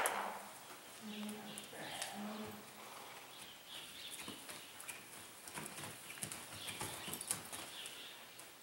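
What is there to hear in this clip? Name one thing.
Horse hooves thud and scuff on soft dirt.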